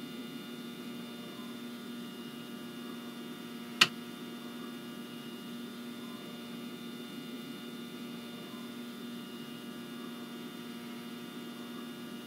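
A stationary electric train hums steadily.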